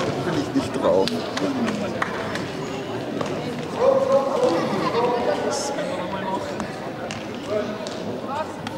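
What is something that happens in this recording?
Children's voices chatter and call out in a large echoing hall.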